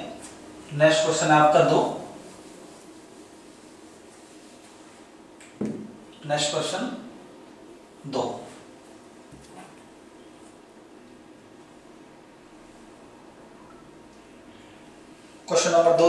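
A man speaks in short bursts through a close microphone in a small echoing room.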